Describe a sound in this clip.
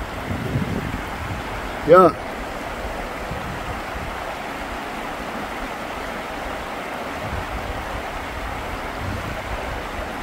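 Water splashes as a man wades through the current.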